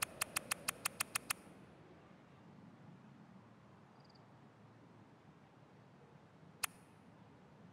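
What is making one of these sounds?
Short, sharp interface clicks sound in a quick run, then once more.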